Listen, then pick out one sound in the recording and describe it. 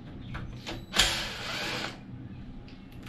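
A cordless drill whirs briefly.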